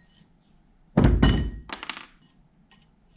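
A metal tool clanks onto a workbench.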